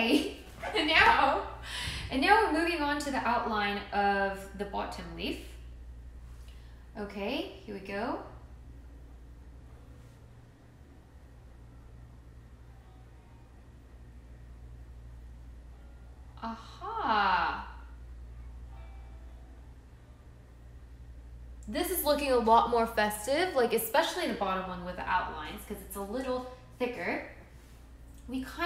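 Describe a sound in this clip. A young woman talks casually and close to a microphone.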